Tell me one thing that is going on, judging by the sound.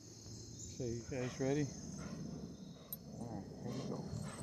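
A dog whines and yelps in short high cries.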